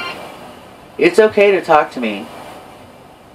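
A smart speaker answers in a synthesized voice.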